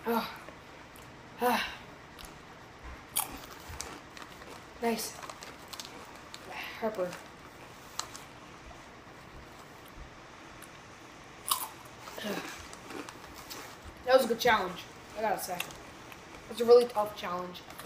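A chip bag crinkles.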